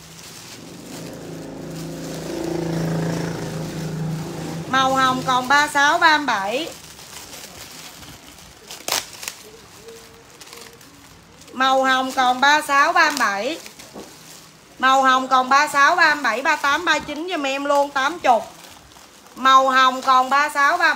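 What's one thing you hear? Plastic bags rustle and crinkle as they are handled.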